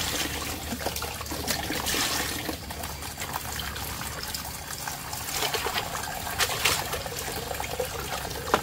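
Hands splash and swish things about in water.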